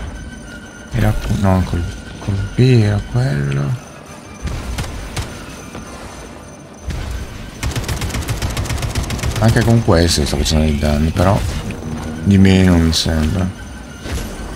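An older man talks with animation, close to a microphone.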